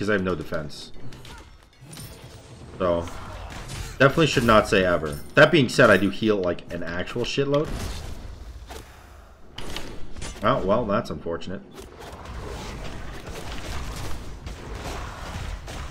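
Video game sound effects of clashing blows and bursts of magic play.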